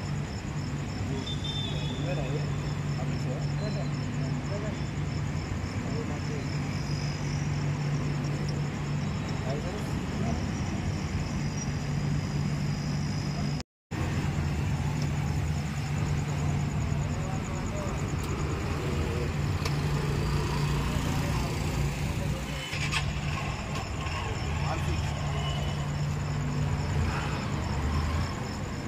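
Traffic passes on a street outdoors.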